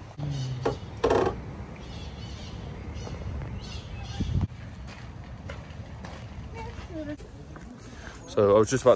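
Parrots chirp and squawk nearby.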